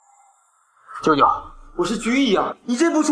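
A middle-aged man speaks in distress.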